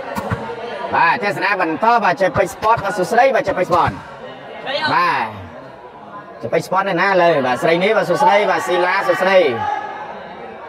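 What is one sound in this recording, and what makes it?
Young men shout loudly and excitedly.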